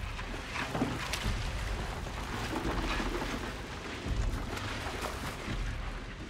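Water splashes and rattles over a metal sieve.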